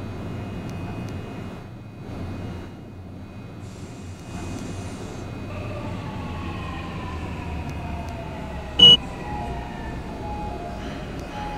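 A subway train rumbles steadily through a tunnel.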